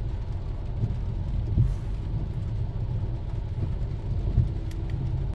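A wiper thumps across a car's windshield.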